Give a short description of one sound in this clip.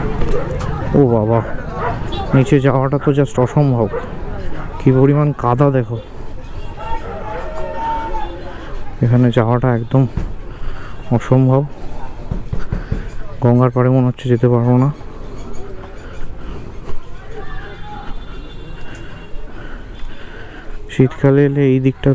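A man speaks nearby with animation.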